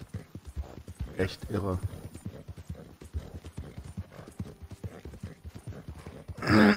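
A horse gallops with quick, rhythmic hoofbeats on soft ground.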